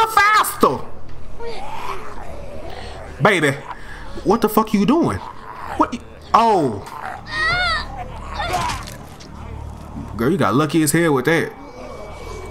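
A young man speaks and exclaims with animation into a close microphone.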